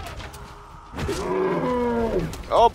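A mammoth bellows loudly.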